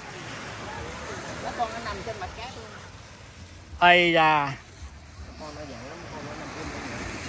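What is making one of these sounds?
Adults talk quietly nearby outdoors.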